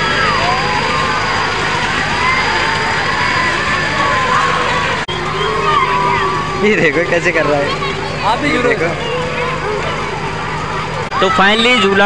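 Young boys shout and laugh excitedly nearby.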